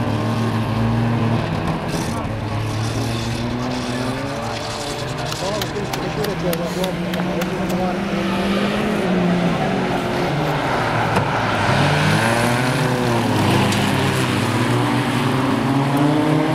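Several race car engines roar and rev nearby, outdoors.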